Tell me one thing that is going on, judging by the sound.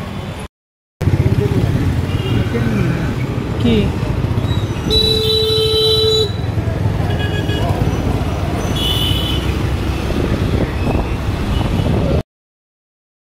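Motorcycles and cars pass along a busy street.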